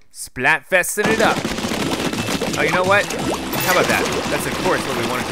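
Ink guns spray and splatter in quick bursts.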